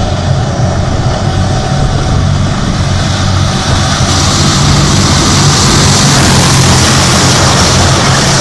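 Tank tracks rumble and clatter on the road.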